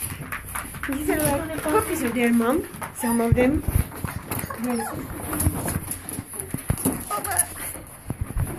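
A young child cries and whines loudly nearby.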